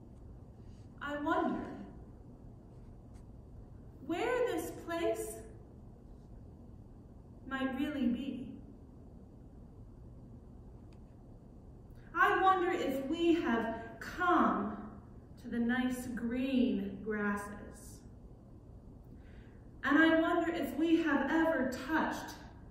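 A woman speaks calmly in short phrases with pauses, close by.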